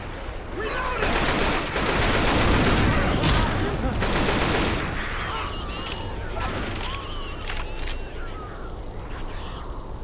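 Zombies groan and shriek.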